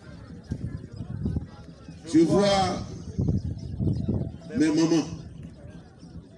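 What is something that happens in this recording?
A man speaks loudly into a microphone through a loudspeaker outdoors.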